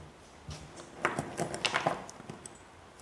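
Metal bolts clink against each other.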